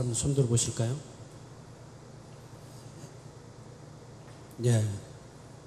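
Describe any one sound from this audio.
A man speaks into a microphone in a large echoing hall, his voice ringing out over a loudspeaker.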